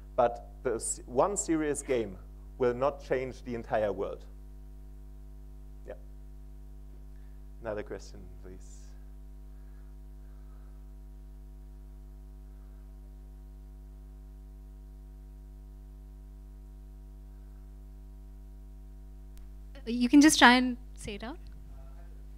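A man speaks into a microphone in a large hall, pausing between phrases.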